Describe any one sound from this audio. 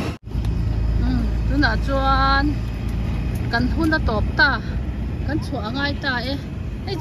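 Women talk and chatter nearby.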